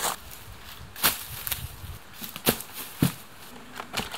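Footsteps crunch through dry leaves and twigs.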